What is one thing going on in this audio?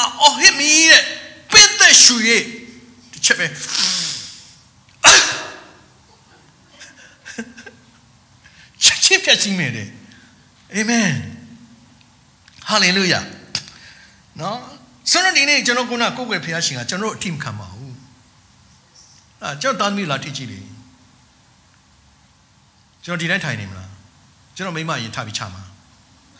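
A middle-aged man preaches with animation into a microphone, in bursts with pauses, in a large room with some echo.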